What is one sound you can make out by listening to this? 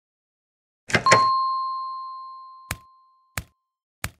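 A bright electronic chime rings once and slowly fades.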